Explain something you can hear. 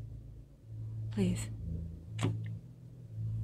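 A woman answers calmly.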